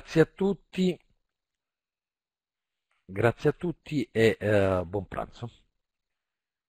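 A man speaks calmly through a headset microphone over an online call.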